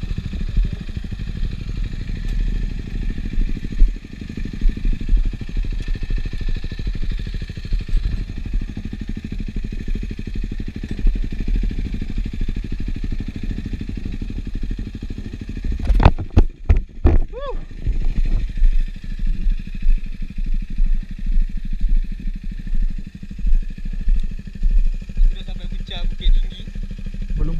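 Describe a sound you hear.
A motorcycle engine idles close by with a low, steady rumble.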